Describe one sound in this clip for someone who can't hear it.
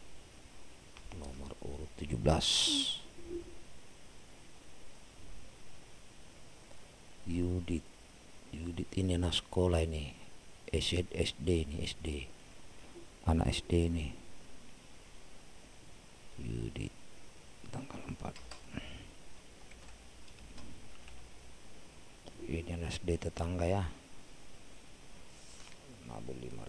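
A man speaks calmly into a microphone in bursts.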